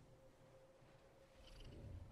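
Large wings beat with heavy whooshes.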